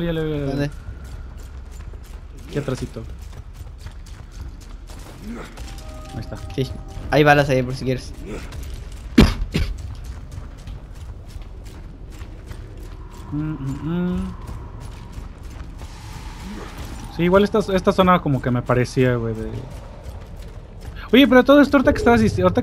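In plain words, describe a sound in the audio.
Heavy armored footsteps thud on rough ground.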